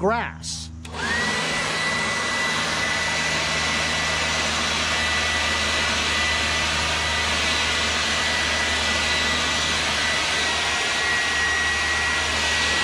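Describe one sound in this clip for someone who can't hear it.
A cordless leaf blower whirs steadily with a high whine.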